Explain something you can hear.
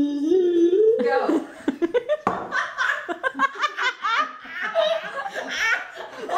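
A young woman laughs loudly in bursts nearby.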